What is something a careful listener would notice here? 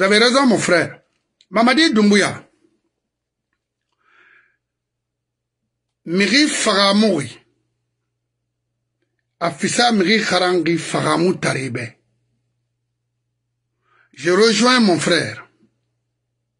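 A middle-aged man speaks emphatically into a microphone close by, in bursts with pauses.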